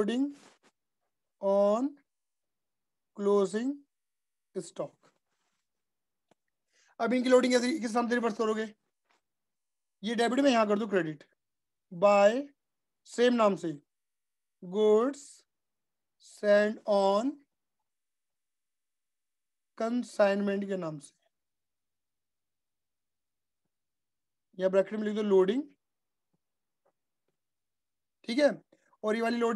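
A man lectures calmly through a microphone, in short phrases with pauses.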